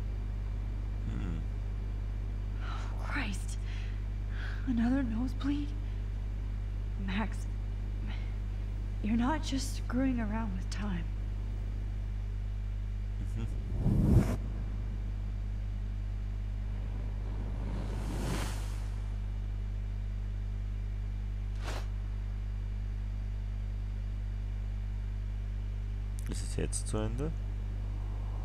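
A man speaks through a headset microphone.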